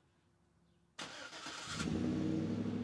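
A truck's starter motor cranks briefly.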